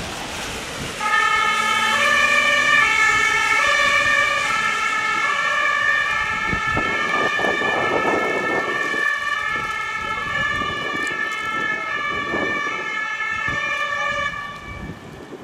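A two-tone ambulance siren sounds and fades as the ambulance drives away.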